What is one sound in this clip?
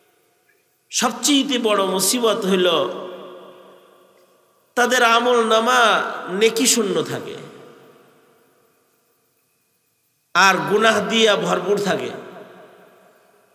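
A middle-aged man preaches forcefully into a microphone through a loudspeaker, his voice echoing in a large space.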